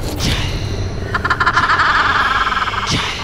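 A woman laughs loudly and menacingly.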